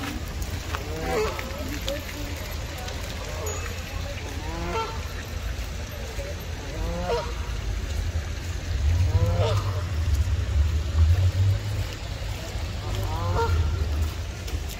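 Water birds call now and then nearby.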